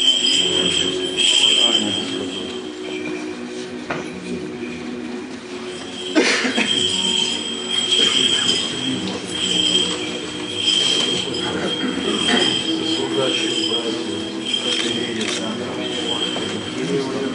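A group of men sings a slow chant together in an echoing room.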